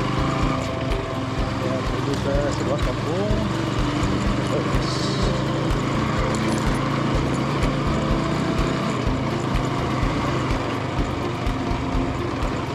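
Tyres rumble and bump over a rough dirt track.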